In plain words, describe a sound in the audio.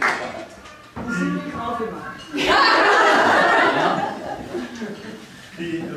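Guests chatter and laugh around a table.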